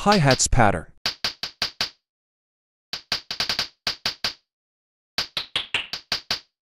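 Short, plucky electronic notes play in a quick rhythm, with pauses between phrases.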